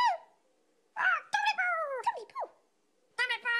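A toy keyboard plays bright, cheerful notes.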